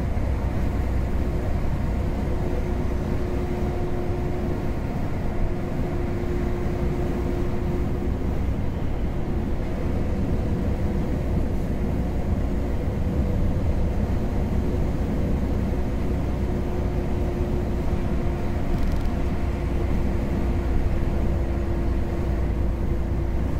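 An engine drones steadily.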